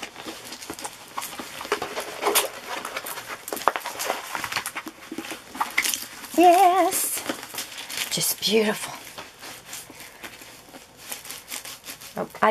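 Paper rustles and crinkles as it is rolled up tightly.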